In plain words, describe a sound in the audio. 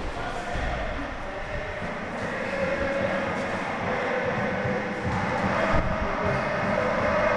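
Sneakers squeak on a hard court floor in a large echoing hall.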